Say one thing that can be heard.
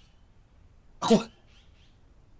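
A middle-aged man exclaims sharply, close by.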